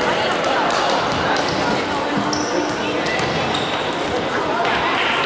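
A crowd chatters in a large, echoing sports hall.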